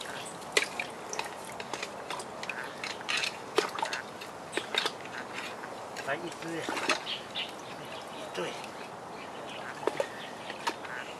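A hand tool scrapes and squelches in wet mud, close by.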